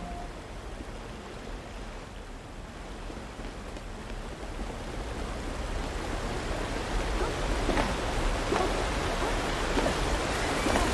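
Wind blows steadily and grows louder.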